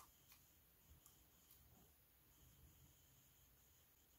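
A SIM tray clicks softly as it is pulled from a phone.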